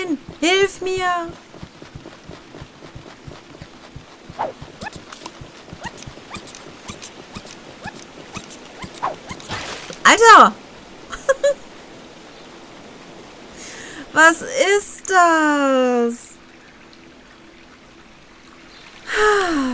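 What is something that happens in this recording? A small cartoon creature squeaks in short high chirps.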